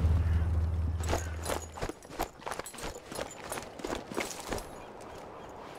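Footsteps patter quickly over a hard floor.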